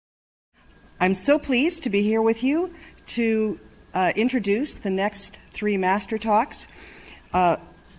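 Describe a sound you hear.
A woman speaks calmly into a microphone over a loudspeaker.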